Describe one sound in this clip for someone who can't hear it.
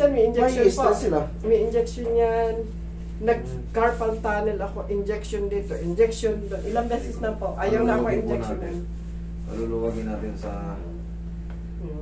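A man talks close by in a calm voice.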